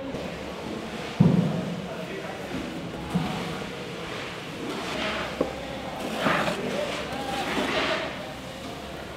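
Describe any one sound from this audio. A metal ladle scrapes and stirs through soybeans.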